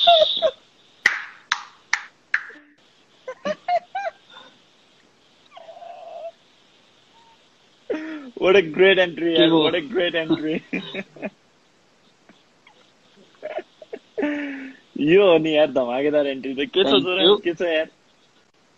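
Two young men laugh together through an online call.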